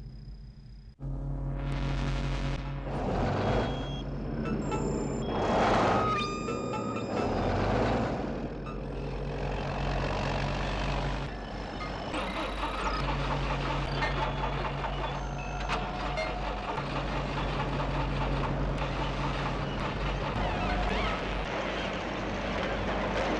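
A heavy diesel engine rumbles and roars.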